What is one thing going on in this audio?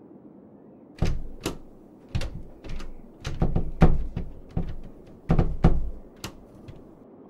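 A key rattles and clicks in a lock.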